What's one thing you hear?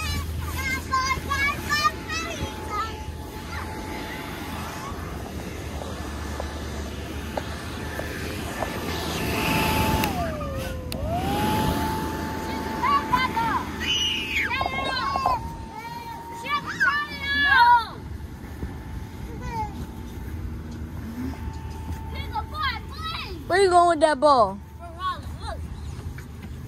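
Young children shout and squeal playfully nearby.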